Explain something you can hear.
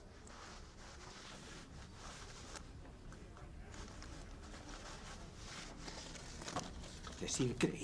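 A leather bag rustles as it is rummaged through.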